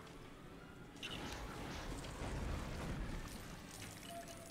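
An explosion bangs with a crackling blast.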